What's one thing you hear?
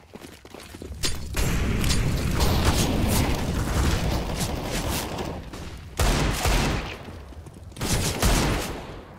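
Pistol shots crack in quick bursts and echo.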